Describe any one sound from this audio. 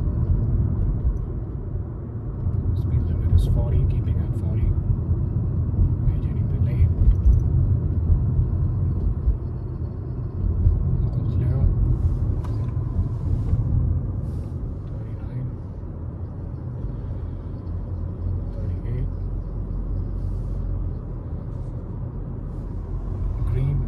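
A car engine hums steadily with road rumble from inside the car.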